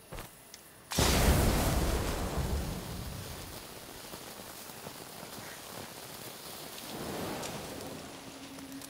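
A fire flares up with a loud whoosh and crackles.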